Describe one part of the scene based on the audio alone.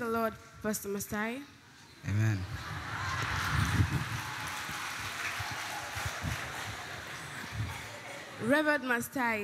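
A young girl speaks with animation into a microphone.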